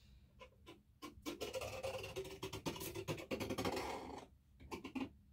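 A canvas scrapes and rustles as it is lifted and handled.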